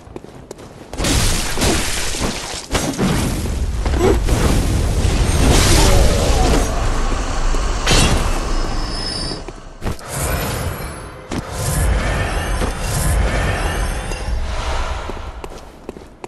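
Weapons slash and strike in a fierce fight.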